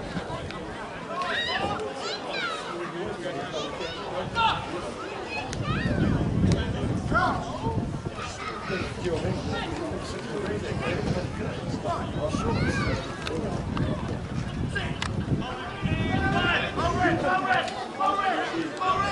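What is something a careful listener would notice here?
Rugby players shout to each other from across the field.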